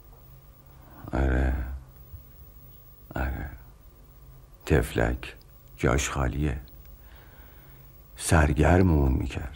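An older man speaks calmly in short phrases, close by.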